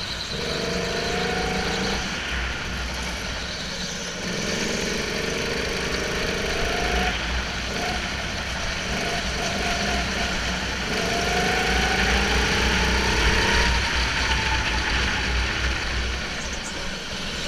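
Other go-kart engines drone nearby in a large echoing hall.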